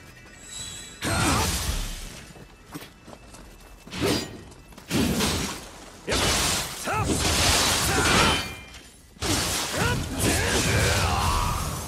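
Blades swish through the air in quick slashes.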